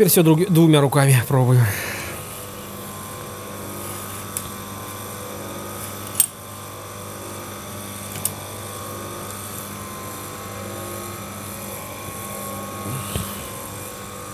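A metal chain clicks as it is pulled along.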